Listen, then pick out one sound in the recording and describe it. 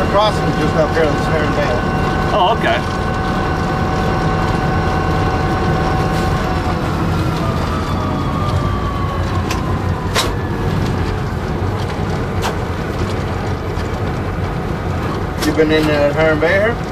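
Steel wheels clatter on the rails.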